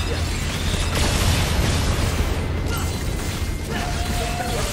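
Explosions rumble and crackle.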